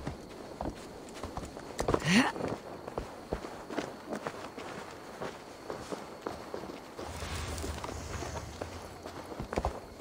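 Footsteps crunch on wet gravel and earth.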